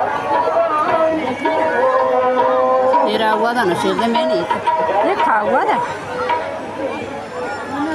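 A band plays drums and keyboard music through loudspeakers outdoors.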